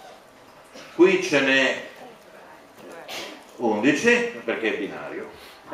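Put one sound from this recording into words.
A middle-aged man speaks calmly into a microphone in a large echoing room.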